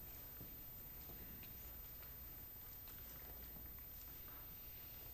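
An audience shifts and rustles quietly in a large hall.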